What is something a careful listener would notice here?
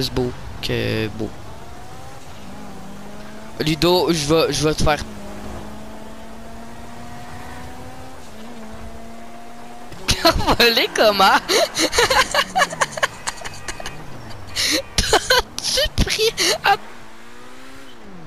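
A car engine hums steadily and shifts in pitch.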